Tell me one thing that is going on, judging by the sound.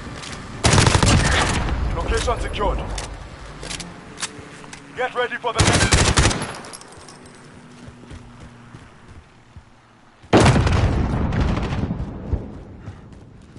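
Gunshots fire in loud rapid bursts, echoing off walls.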